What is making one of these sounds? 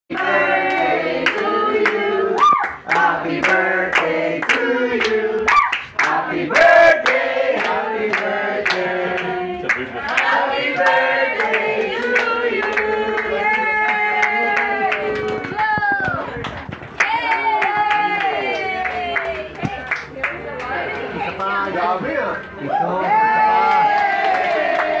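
A crowd of men and women sings together loudly and close by.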